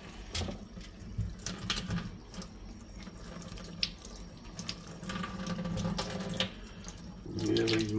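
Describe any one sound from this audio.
Foil crinkles as mushrooms are placed on it.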